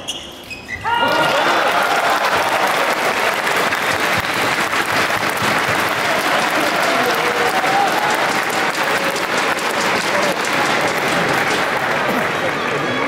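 A large crowd cheers and applauds loudly in an echoing hall.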